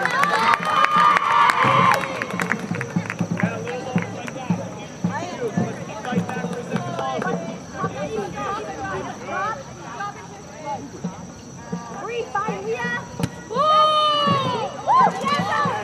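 Young women shout and call out outdoors.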